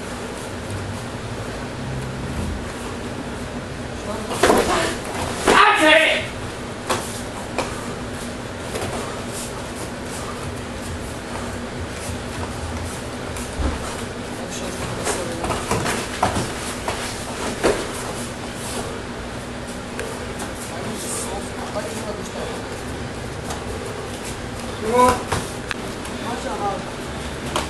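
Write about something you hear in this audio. Bare feet shuffle and stamp on a foam mat.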